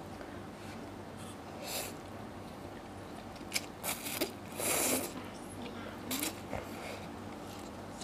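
A woman slurps noodles loudly.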